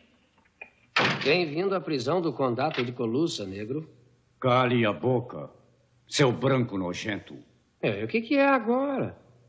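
A second man speaks in a clear voice.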